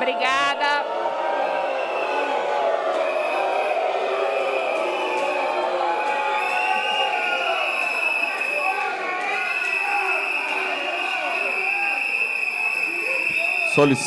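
Many people murmur and chatter in a large echoing hall.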